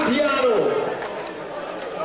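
A man speaks through a microphone over a loudspeaker.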